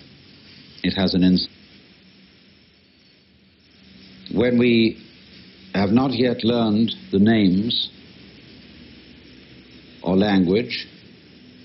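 A man speaks calmly in short phrases through a recording.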